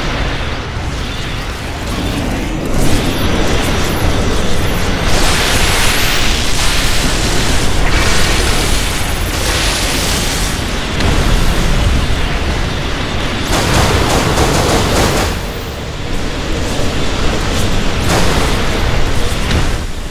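Game battle effects crackle and blast steadily.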